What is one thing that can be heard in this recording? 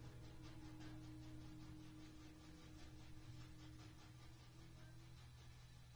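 A trombone plays a sustained note.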